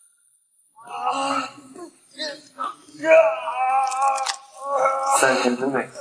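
A young man cries out in pain.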